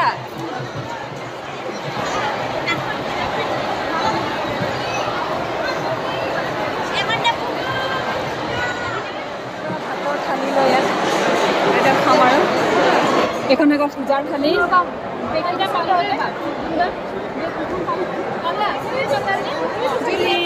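A large crowd of women chatters in a big echoing tent.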